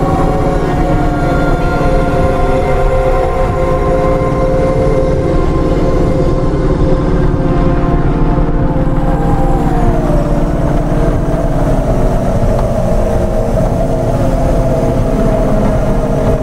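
A futuristic vehicle engine hums with a steady low drone.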